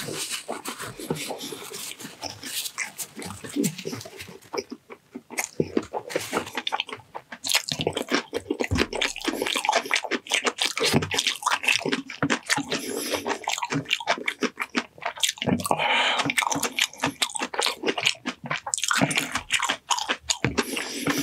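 A man chews food loudly and wetly close to a microphone.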